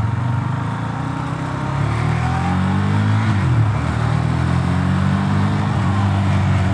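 A motorcycle engine rumbles steadily and revs up as the bike rides along a street.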